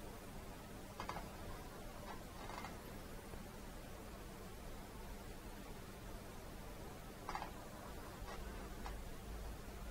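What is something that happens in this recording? A paintbrush dabs and scrapes on a palette.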